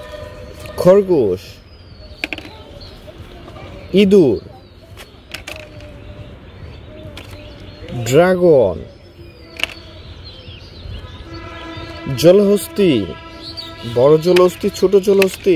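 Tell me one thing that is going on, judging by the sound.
Small plastic toys tap softly as they are set down in a wicker basket.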